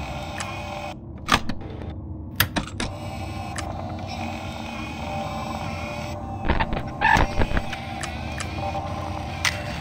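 Electronic static crackles as a security monitor switches views.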